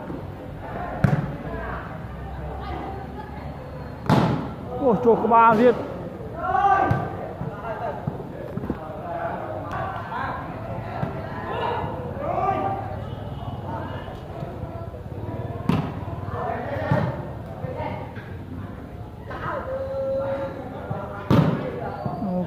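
Hands slap a volleyball hard.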